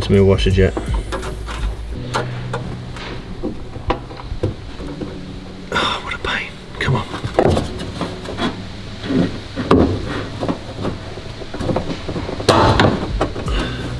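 A middle-aged man talks calmly and close by.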